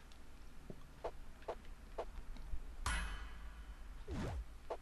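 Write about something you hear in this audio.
Short electronic menu blips sound as options are picked.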